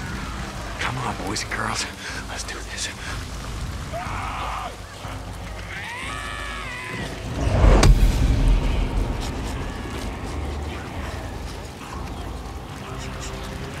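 Footsteps crunch over gravel and grass.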